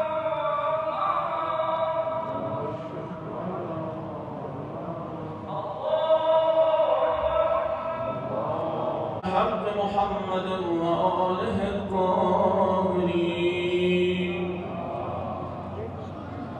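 A man chants through a loudspeaker, echoing outdoors.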